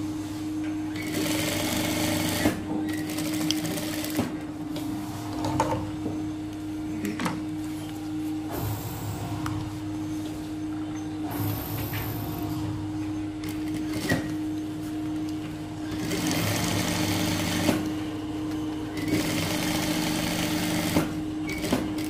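A sewing machine stitches in quick bursts.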